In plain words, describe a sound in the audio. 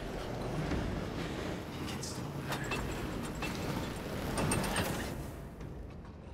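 A heavy metal valve wheel grinds as it turns.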